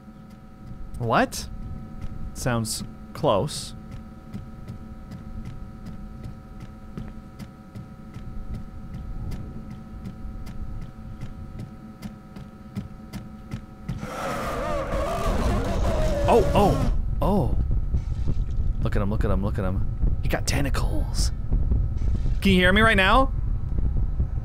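A man talks with animation into a nearby microphone.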